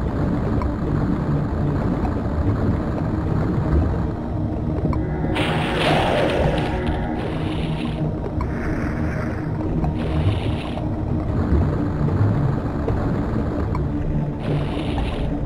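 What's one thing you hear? A blade crackles and hums with energy.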